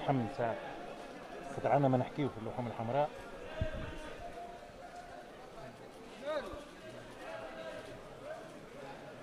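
People murmur softly in the background.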